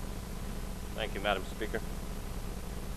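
A middle-aged man speaks briefly into a handheld microphone.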